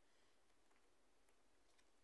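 A card taps softly onto a table.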